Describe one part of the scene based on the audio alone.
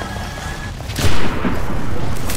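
A rifle fires a single loud shot that echoes briefly.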